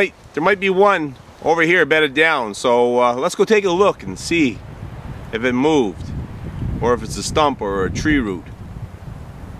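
A man speaks calmly and closely, outdoors.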